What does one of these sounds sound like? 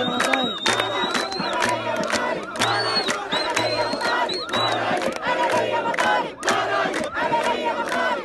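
A large crowd chants and cheers loudly outdoors.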